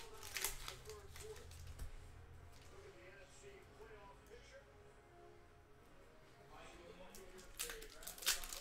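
Trading cards rustle and slap as a hand handles a stack.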